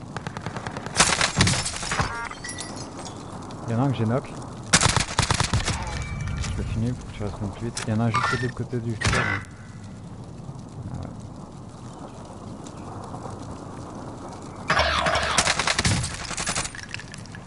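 Sniper rifle shots crack loudly.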